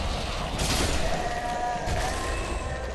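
A sword slashes and strikes a creature with a sharp hit.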